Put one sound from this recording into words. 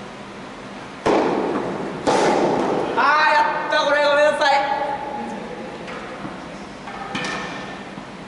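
A tennis ball is struck hard with a racket in an echoing indoor hall.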